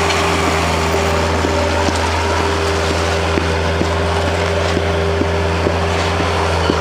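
A small loader's diesel engine rumbles steadily close by.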